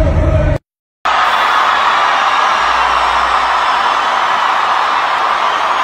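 A large stadium crowd cheers and screams.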